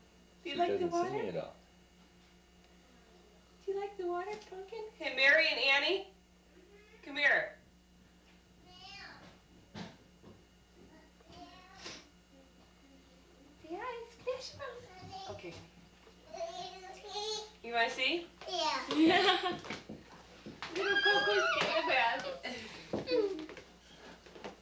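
A woman talks to a baby in a soft, lively voice close by.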